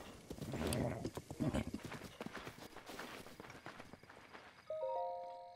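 A horse gallops with quick thudding hoofbeats.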